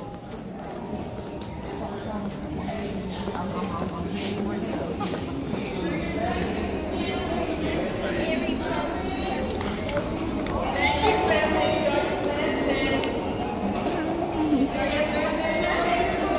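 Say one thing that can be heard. Adult voices murmur and chatter in a large echoing hall.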